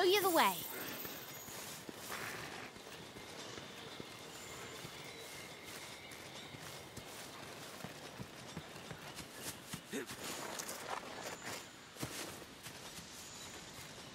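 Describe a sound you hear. Footsteps patter softly through grass and undergrowth.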